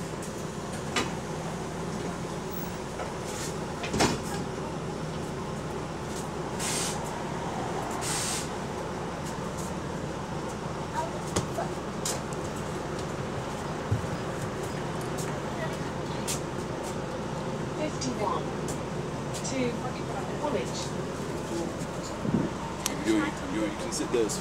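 Knocks and rattles sound now and then inside the bus.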